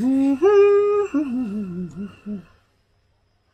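A middle-aged man sings held notes close by, then wavers.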